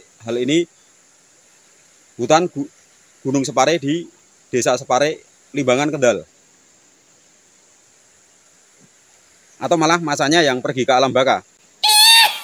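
A man speaks calmly up close, in short phrases with pauses.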